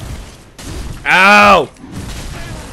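A young man shouts loudly through a close microphone.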